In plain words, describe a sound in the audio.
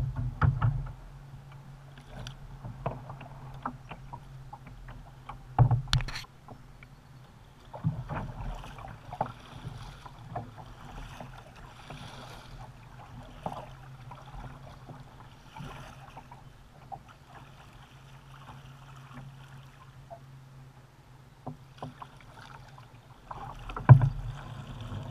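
A plastic paddle knocks against a kayak's hull.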